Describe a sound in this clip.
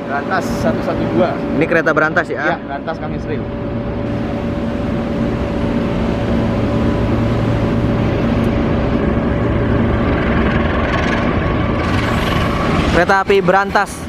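A diesel locomotive rumbles as it hauls a passenger train.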